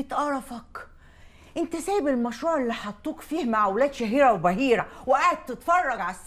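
A young man answers a woman.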